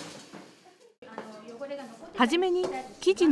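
A woman talks nearby.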